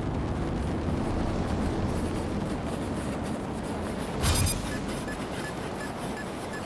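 A vehicle's engine roars and thrusters hiss steadily as it flies.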